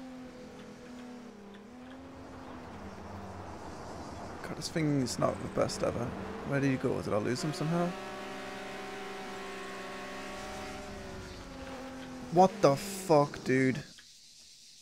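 A car engine hums and revs as a car speeds along.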